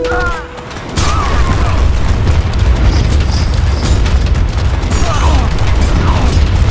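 Explosions boom and rumble in a battle.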